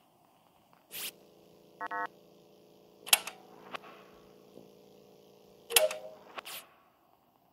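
A video game's wiring task plays a steady electric hum.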